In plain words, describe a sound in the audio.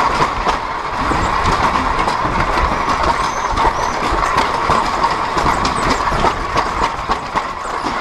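An electric motorbike whines steadily.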